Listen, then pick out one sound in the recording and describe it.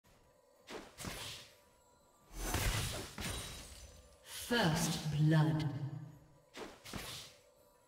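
Game spell effects whoosh and burst in short bursts.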